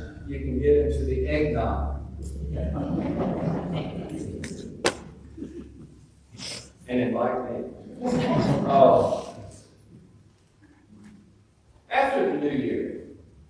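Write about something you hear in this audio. A man preaches to a gathering, with pauses, in a large echoing room.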